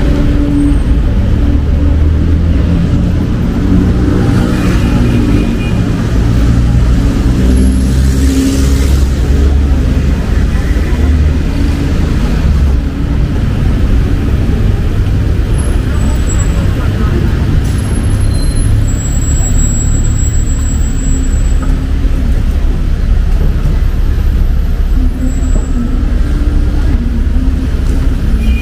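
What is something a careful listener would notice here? Busy city traffic rumbles steadily nearby.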